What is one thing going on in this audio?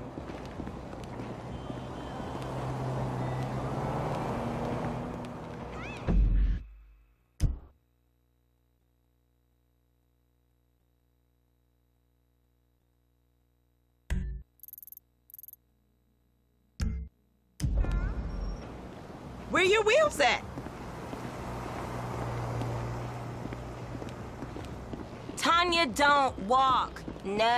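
Footsteps tap on pavement outdoors.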